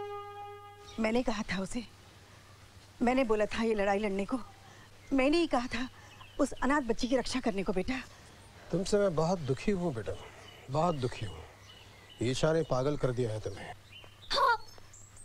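A woman speaks tensely nearby.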